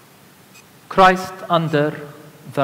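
A second man speaks into a microphone in a large echoing hall.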